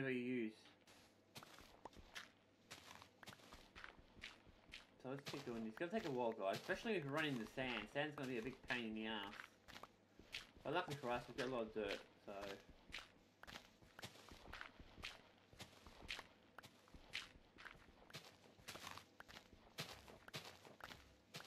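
Quick soft crunching thuds repeat as blocks of dirt are dug.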